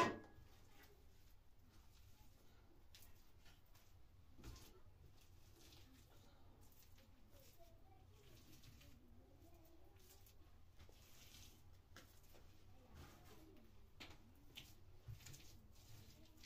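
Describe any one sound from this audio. A hand rubs and smooths wet plaster on a wall with soft scraping.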